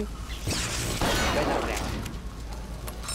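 Electricity crackles and sizzles.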